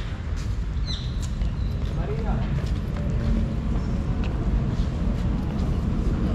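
Footsteps tap on paving stones.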